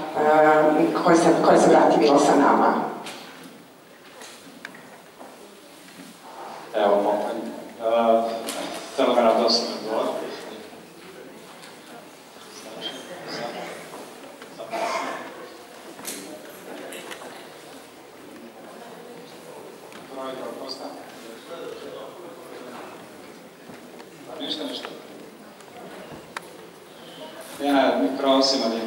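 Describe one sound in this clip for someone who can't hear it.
A large mixed choir sings in an echoing hall, swelling in loud bursts between quieter passages.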